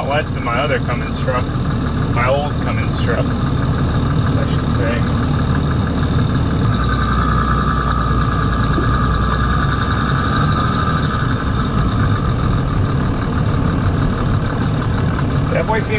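A truck's diesel engine rumbles steadily while driving.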